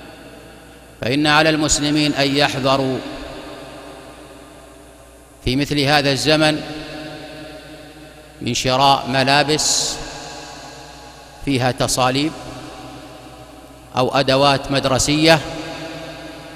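A man speaks slowly and solemnly into a microphone, in short phrases with pauses, in a reverberant room.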